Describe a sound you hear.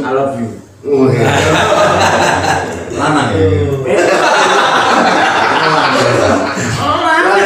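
A group of men laugh loudly together.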